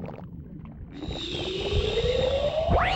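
A shimmering magical tone swells and rises in pitch.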